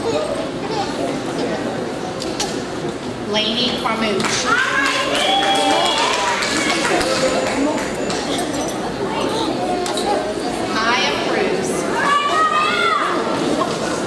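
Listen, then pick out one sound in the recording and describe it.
A woman reads out names through a microphone in a large echoing hall.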